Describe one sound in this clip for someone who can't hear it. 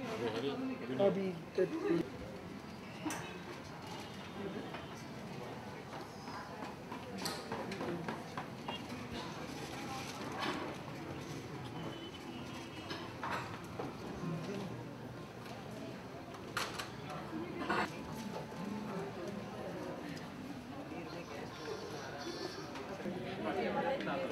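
A crowd of men and women chatters indistinctly nearby.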